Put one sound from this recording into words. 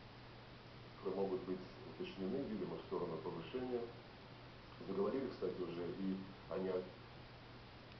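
An elderly man speaks calmly into a microphone, heard through a television speaker.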